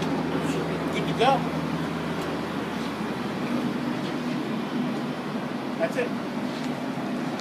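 An offset printing press runs with a steady mechanical hum.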